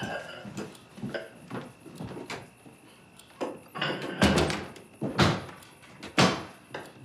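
A woman speaks tensely nearby, her voice rising at times.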